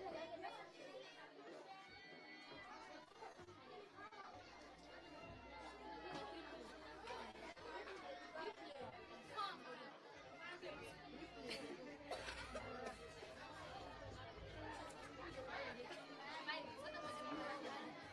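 A choir of children sings together through loudspeakers outdoors.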